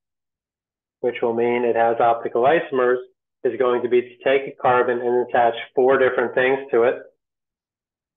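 A man talks calmly and clearly into a close microphone, as if explaining a lesson.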